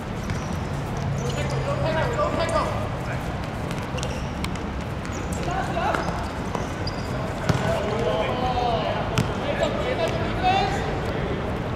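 Young men shout and call out across an open outdoor court.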